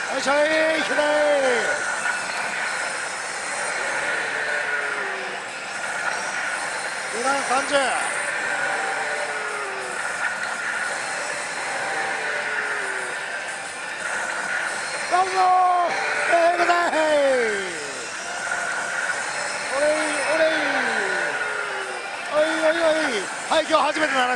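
A slot machine plays loud electronic jingles and swooping tones.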